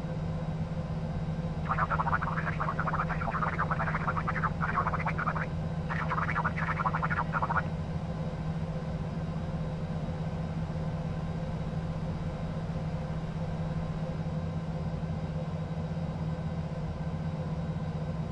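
A jet engine hums steadily as an airliner taxis.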